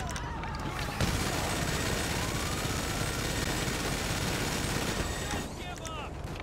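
A heavy gun fires a long, rapid burst.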